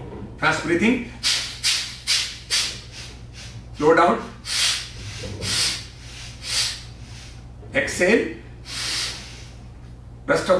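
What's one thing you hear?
A man breathes out forcefully in short, sharp bursts.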